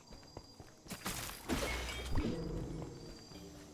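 An arrow whooshes and bursts with a fiery crackle.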